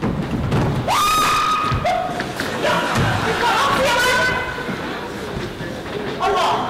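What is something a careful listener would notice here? A young woman shouts excitedly.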